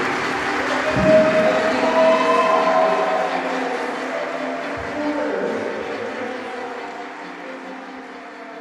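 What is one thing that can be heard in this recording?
A man sings through a microphone in an echoing hall.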